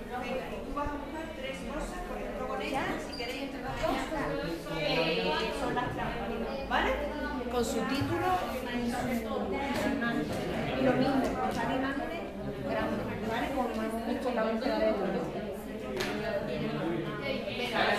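Many children and teenagers chatter at once in a busy, echoing room.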